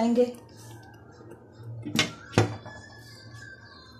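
A glass lid clatters onto a pan.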